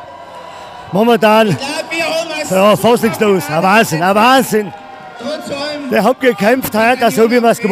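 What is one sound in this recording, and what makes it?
A middle-aged man answers cheerfully into a microphone.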